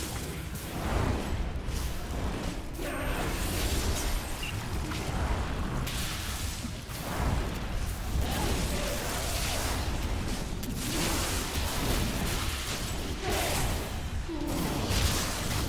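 Spells crackle and explode in a game battle.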